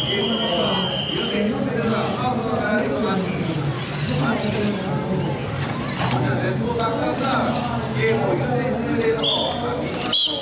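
Small electric toy car motors whir as the cars drive about.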